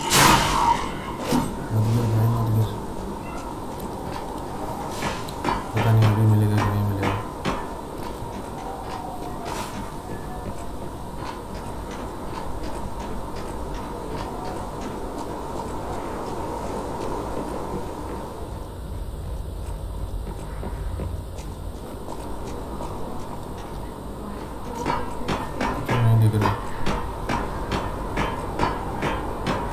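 Footsteps run quickly over a roof.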